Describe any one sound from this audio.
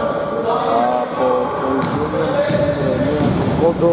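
A basketball thuds as it bounces on a wooden floor.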